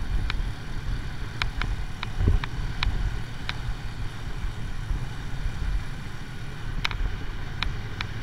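Wind buffets loudly against a moving rider.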